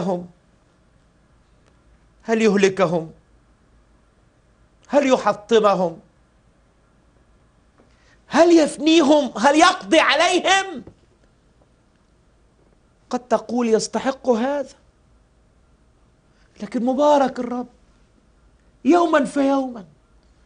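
A middle-aged man speaks with feeling into a close microphone, in short bursts with pauses.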